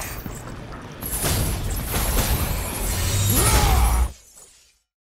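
A fiery blast roars and booms.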